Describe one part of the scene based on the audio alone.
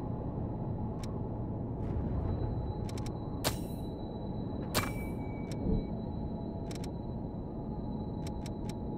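Menu selection clicks tick sharply several times.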